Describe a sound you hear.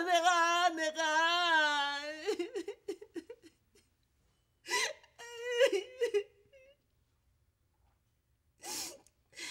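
An elderly woman wails and sobs loudly nearby.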